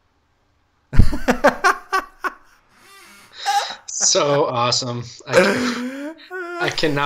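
A second man laughs, heard through an online call.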